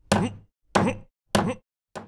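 A hammer knocks on wood.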